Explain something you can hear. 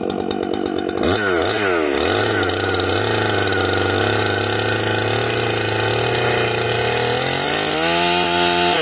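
A chainsaw engine starts and idles steadily.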